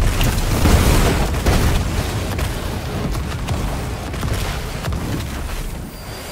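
Explosions boom and roar with a deep rumble.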